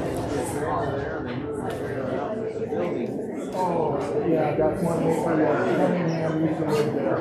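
A small group of men and women sings a slow hymn in an echoing hall.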